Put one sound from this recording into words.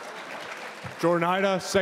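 A man speaks loudly into a microphone, his voice echoing through a large hall.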